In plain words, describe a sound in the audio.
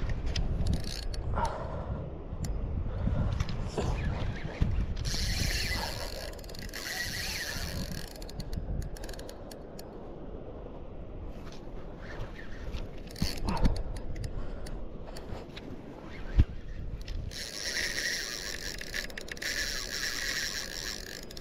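A spinning reel is wound in.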